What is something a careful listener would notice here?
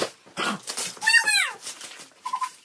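A young girl squeals excitedly close by.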